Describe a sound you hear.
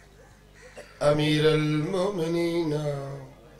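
A man chants loudly into a microphone in a sustained, wavering voice.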